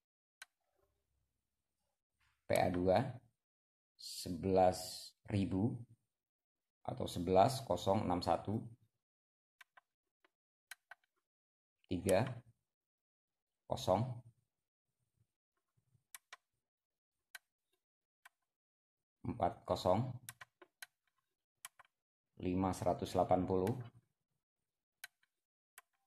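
Small buttons click softly as they are pressed.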